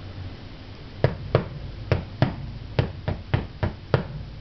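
A man strikes drums with sticks in sharp, spaced hits.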